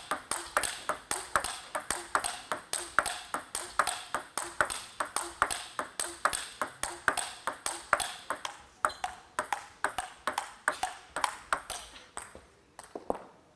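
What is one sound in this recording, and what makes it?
A ping-pong ball clicks rapidly back and forth off paddles and the table in a fast rally.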